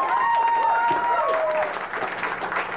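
An electric guitar squeals with feedback.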